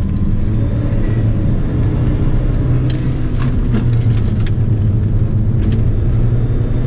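A car engine roars steadily from inside the cabin.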